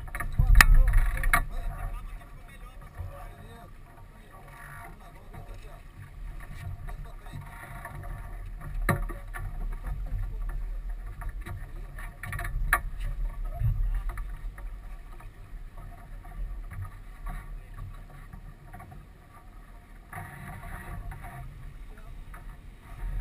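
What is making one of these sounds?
Water splashes against the hull of a sailboat.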